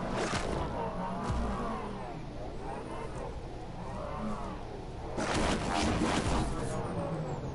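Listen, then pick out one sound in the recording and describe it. A hover vehicle's engine whooshes and hums as it races along.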